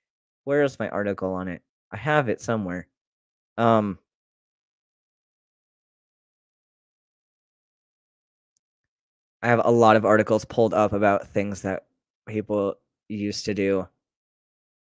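A young man talks calmly and close into a microphone, with pauses.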